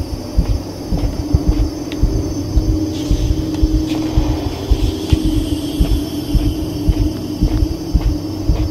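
Heavy footsteps thud in a steady march.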